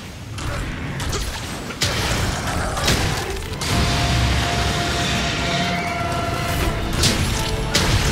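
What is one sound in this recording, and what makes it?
A large creature roars and thrashes heavily.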